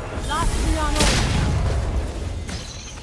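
Magic spell effects whoosh and burst in a video game.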